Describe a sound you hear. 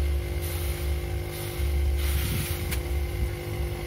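A plastic sack rustles and crinkles.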